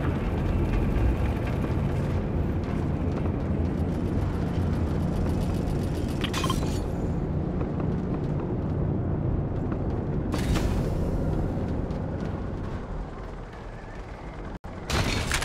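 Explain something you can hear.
Quick footsteps clatter on a metal floor.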